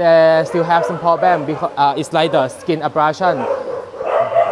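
A dog whines with high, wavering cries.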